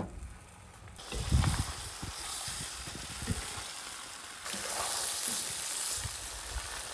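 Meat sizzles and crackles in a hot pan.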